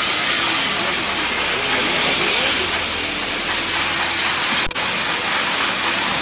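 A power grinder whines against metal.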